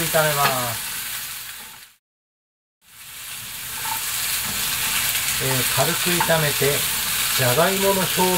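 A wooden spatula scrapes and stirs in a pan.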